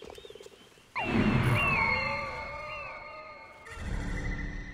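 An eagle screeches loudly.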